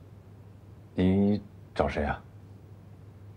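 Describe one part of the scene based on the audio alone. A young man asks a question calmly.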